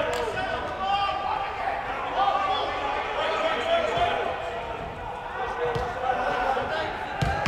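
Young women shout and call to each other across a large echoing indoor pitch.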